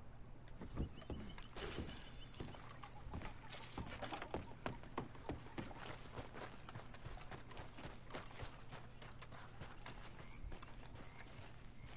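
Footsteps thud on wooden planks and then on dirt.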